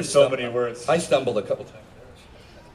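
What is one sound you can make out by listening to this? A man speaks loudly through a microphone, heard over loudspeakers outdoors.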